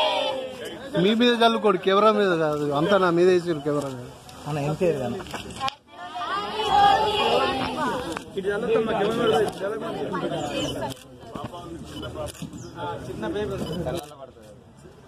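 A large crowd of young people shouts and cheers together outdoors.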